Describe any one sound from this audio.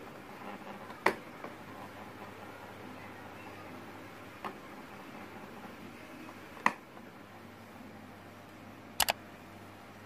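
A plastic knob clicks sharply as it is turned.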